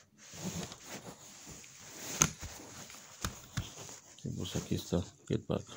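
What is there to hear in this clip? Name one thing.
A plastic disc case clicks and rattles as fingers handle it.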